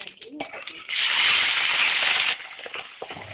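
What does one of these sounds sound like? Vegetables hit hot oil with a loud, sudden hiss.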